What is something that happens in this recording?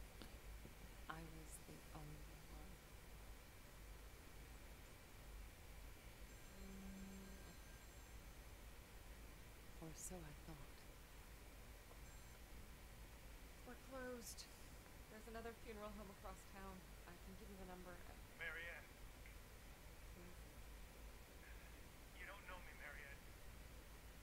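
A young woman speaks quietly and calmly.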